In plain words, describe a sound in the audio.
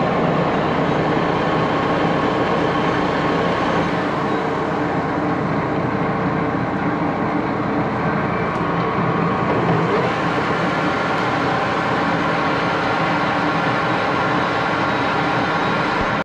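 A lathe motor hums steadily as the chuck spins.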